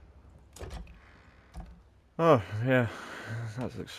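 A wooden hatch creaks open.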